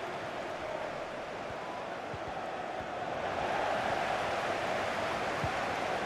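A stadium crowd roars steadily, swelling louder midway.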